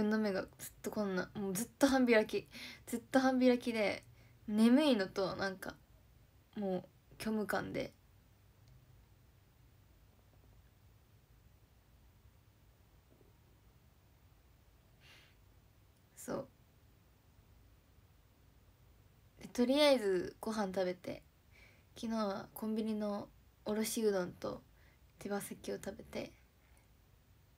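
A young woman talks calmly and close by, with long pauses.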